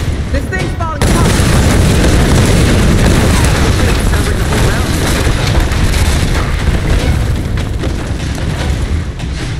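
Burning debris crackles and crashes.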